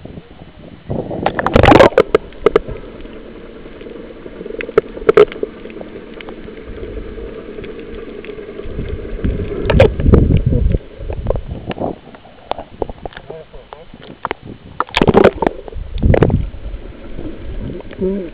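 Sea water splashes and sloshes, heard muffled from underwater.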